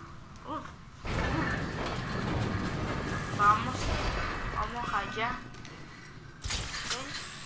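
A heavy stone door grinds open with a deep rumble.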